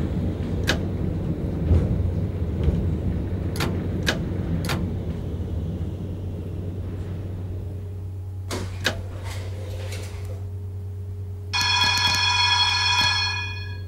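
A tram's electric motor hums steadily.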